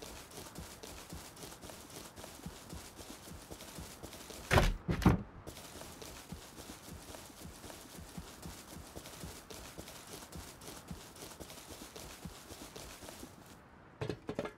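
Footsteps swish through grass at a steady pace.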